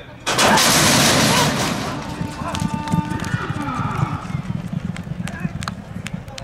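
Horses' hooves pound rapidly on a dirt track.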